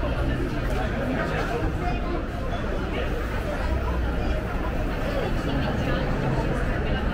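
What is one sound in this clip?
A crowd of people chats nearby in the open.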